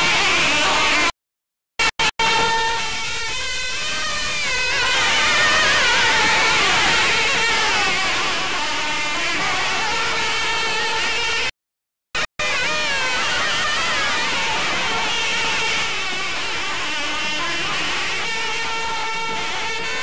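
A large group of reed pipes plays a loud, wavering melody together.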